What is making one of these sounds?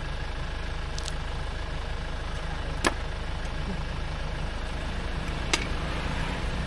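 A knife chops sharply on a wooden block.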